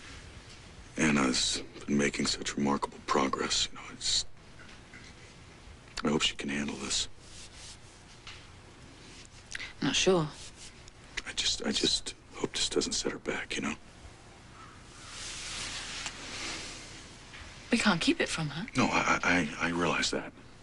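A man speaks in a low, quiet voice close by.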